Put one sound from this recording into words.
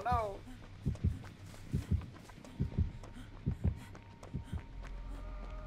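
Footsteps run over soft ground and rustle through grass.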